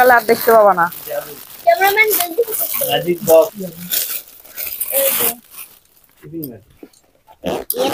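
Plastic wrapping rustles and crinkles as a gift is unwrapped.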